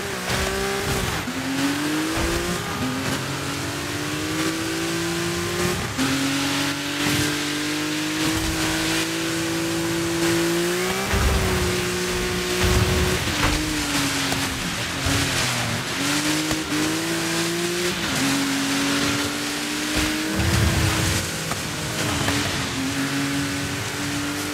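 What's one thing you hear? A rally car engine roars, rising in pitch and dropping at each gear change.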